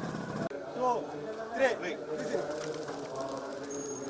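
Pigeons flap their wings as they take off.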